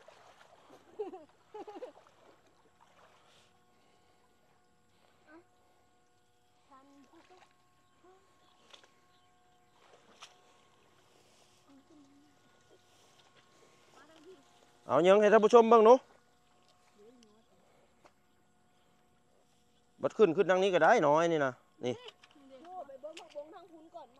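Water splashes and sloshes as people wade.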